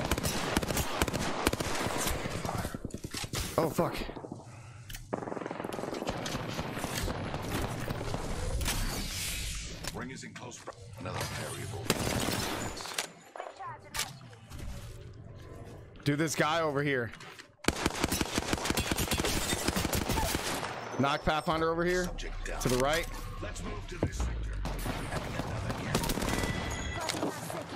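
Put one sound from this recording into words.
Gunfire crackles in rapid bursts from a game.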